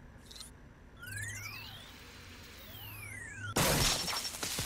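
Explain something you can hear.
A handheld electronic device sweeps through rising and falling tones.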